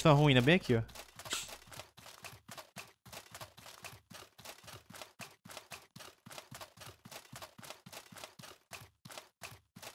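Footsteps crunch quickly and steadily on soft ground.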